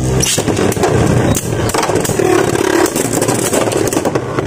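Spinning tops clack as they collide.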